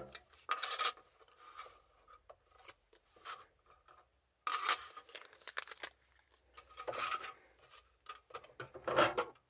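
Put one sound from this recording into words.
Thin metal pieces click and tap against a plastic plate.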